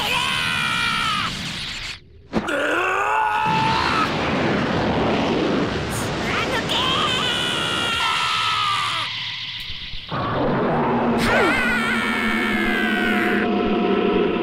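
A young boy screams with strain.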